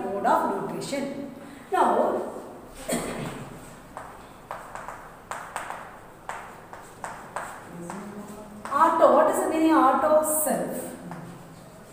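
A woman speaks calmly, as if teaching.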